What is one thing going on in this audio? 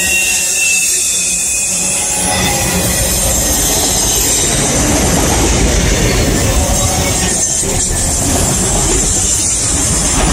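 Metal screeches and squeals from the passing railcars.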